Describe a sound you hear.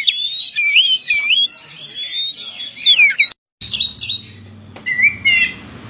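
A songbird sings loud, quick whistling phrases close by.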